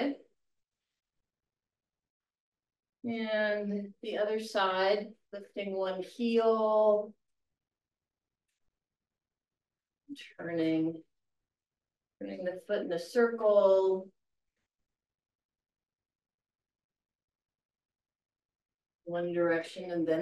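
An elderly woman speaks calmly through a microphone, with pauses.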